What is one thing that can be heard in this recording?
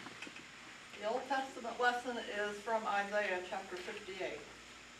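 An elderly woman reads aloud calmly.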